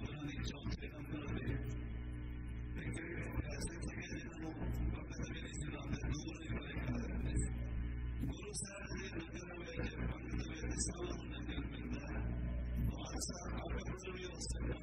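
An elderly man speaks steadily through a microphone.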